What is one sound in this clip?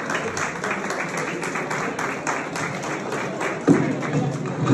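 A large crowd claps in a steady rhythm indoors.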